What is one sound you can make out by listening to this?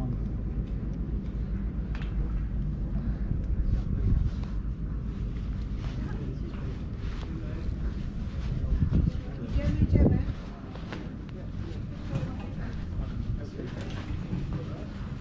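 Wind blows across an open space outdoors.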